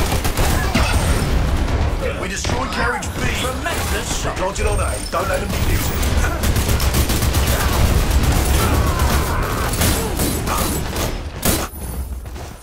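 Explosions boom and rumble in a busy firefight.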